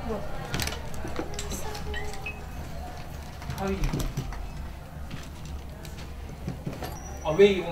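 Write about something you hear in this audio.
Items rustle and clink as a bag is rummaged through.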